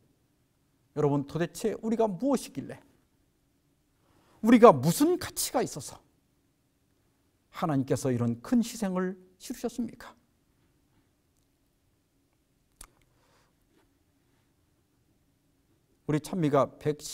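A middle-aged man speaks calmly and clearly into a microphone, with long pauses.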